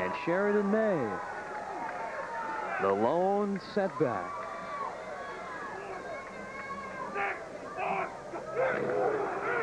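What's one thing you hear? A young man shouts signals across an open field.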